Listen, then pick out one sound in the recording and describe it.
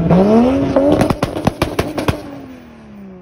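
A Toyota Supra's exhaust crackles with sharp pops and bangs.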